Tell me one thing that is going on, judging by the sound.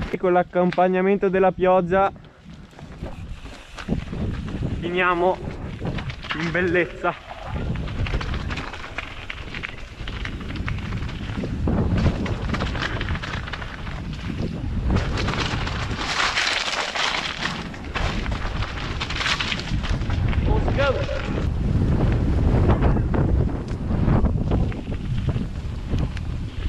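Wind buffets against a helmet.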